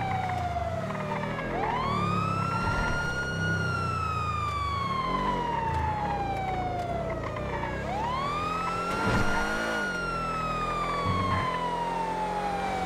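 A car engine roars as it accelerates.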